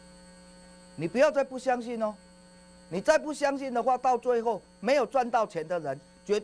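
A middle-aged man speaks with animation into a microphone, close by.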